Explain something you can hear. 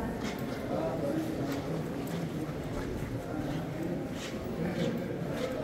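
Voices murmur and echo in a large stone hall.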